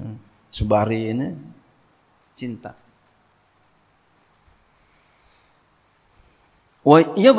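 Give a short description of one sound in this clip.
A man speaks emphatically into a microphone, with long pauses.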